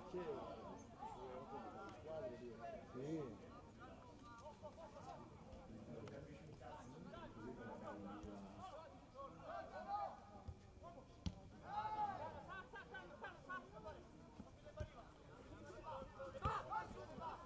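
Young men shout and call to each other across an open outdoor field.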